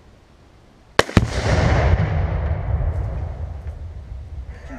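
A loud explosion booms and rumbles away outdoors.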